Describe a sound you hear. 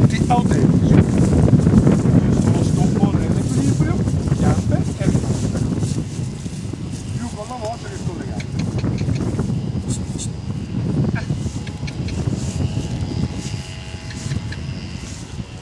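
A man speaks outdoors, a little way off.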